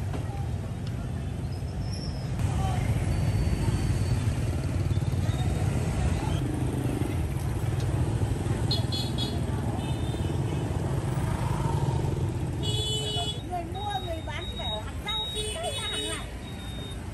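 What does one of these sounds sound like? Motorbike engines hum and putter past on a busy street.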